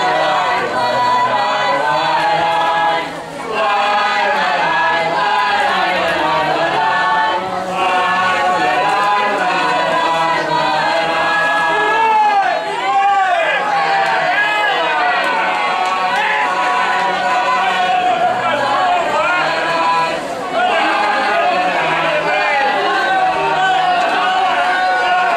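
A group of women and men sing together.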